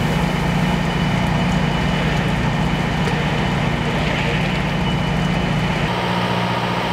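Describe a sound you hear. A fire engine's pump engine rumbles steadily close by.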